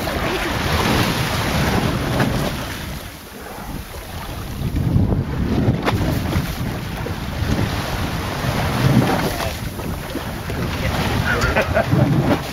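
Choppy sea water splashes and sloshes.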